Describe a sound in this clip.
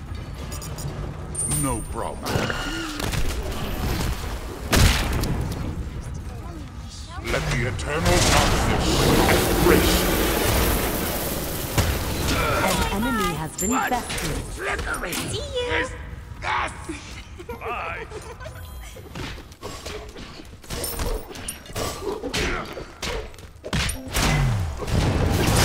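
Weapons clash and strike in a fight.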